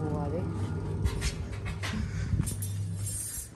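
Light metal frame parts clink and knock together.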